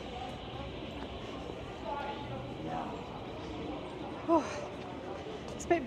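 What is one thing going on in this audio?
People talk faintly in the distance on an open street.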